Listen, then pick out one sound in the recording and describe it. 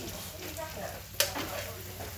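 A metal utensil scrapes and clinks in a pan.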